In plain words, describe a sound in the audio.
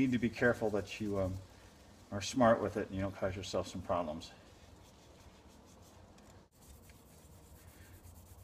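A thin paper stencil rustles softly as it is peeled away by hand.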